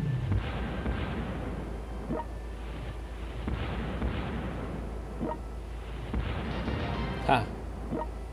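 Heavy ship guns fire with loud booms.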